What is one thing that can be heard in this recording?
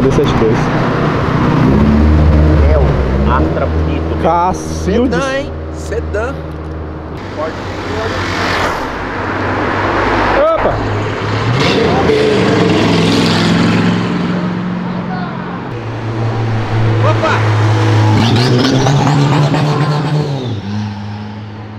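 Car engines rumble and roar as cars drive past one after another.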